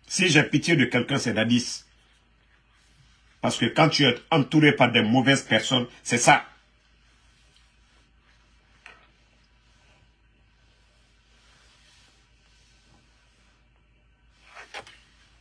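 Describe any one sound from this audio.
A man speaks with animation close to a microphone, pausing between phrases.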